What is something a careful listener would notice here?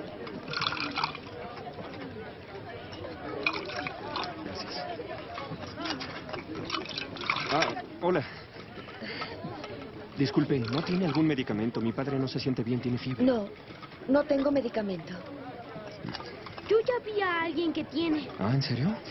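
A crowd murmurs and clamours nearby.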